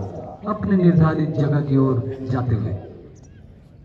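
A man shouts parade commands loudly outdoors.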